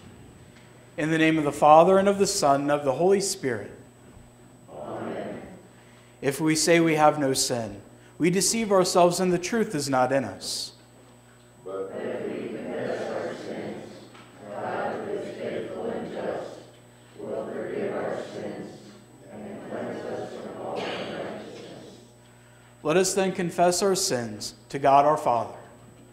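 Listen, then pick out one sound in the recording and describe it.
A man chants into a microphone in an echoing hall.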